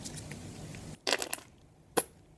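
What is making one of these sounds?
A squeeze bottle splutters as sauce is squeezed out.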